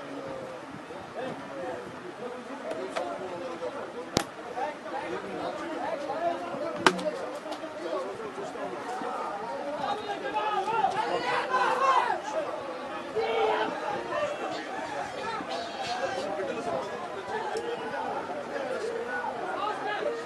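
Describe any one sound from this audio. A crowd of men talk over one another nearby.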